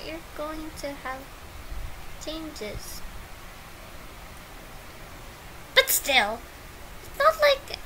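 A young woman speaks with animation, close up.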